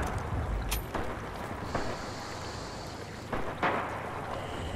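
A rifle's bolt clicks and clacks.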